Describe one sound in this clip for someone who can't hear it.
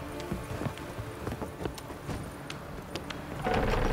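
Boots thud up wooden stairs.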